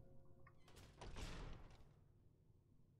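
A heavy metal door swings and thuds.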